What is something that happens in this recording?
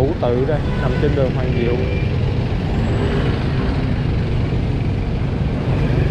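A truck engine rumbles close by.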